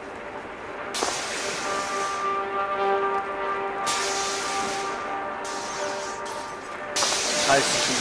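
A neon sign hums and buzzes electrically.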